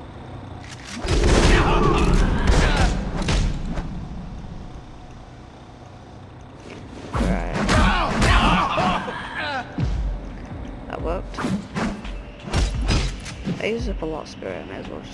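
Punches and kicks thud in a game fight.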